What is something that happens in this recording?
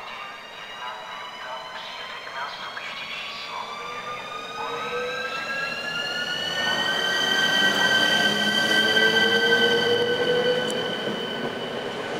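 An electric locomotive pulls in with a high motor whine that rises in pitch, then holds steady.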